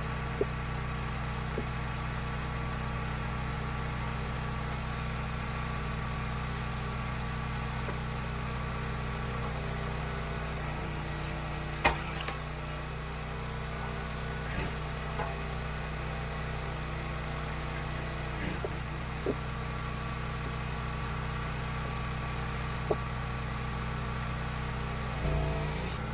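A gas engine runs with a steady, loud hum.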